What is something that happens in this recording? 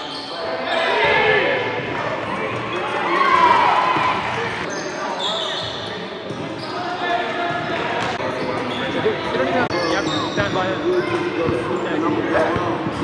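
Young men call out to each other in an echoing gym.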